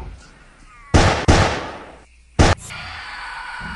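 Pistol shots crack loudly.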